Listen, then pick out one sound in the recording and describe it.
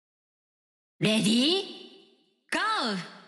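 A short electronic game jingle plays twice.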